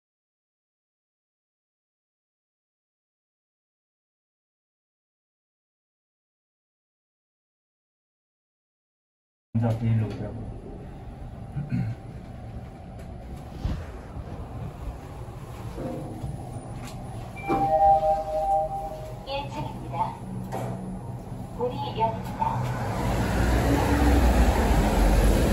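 An elevator chime rings.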